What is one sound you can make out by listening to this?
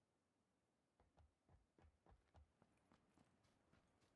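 Footsteps thud quickly on the ground as someone runs.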